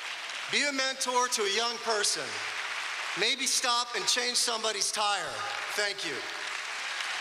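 A middle-aged man speaks slowly into a microphone in a large echoing hall.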